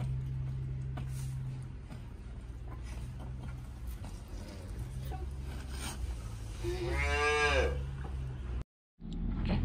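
A calf sucks noisily at a feeding bottle.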